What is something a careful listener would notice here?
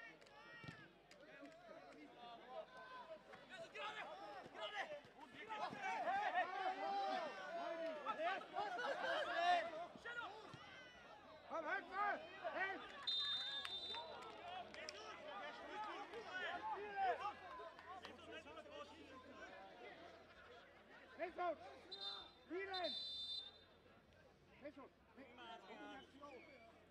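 Men shout to each other on a pitch.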